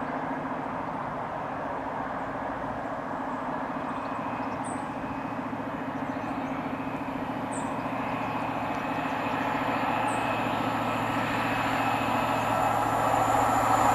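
A diesel train engine roars steadily as it approaches and grows louder.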